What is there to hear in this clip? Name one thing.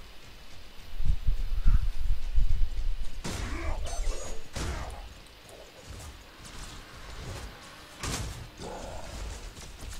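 Shots and blasts crackle in a close fight.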